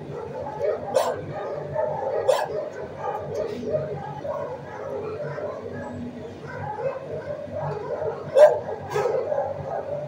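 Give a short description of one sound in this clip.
A gloved hand knocks against metal cage bars.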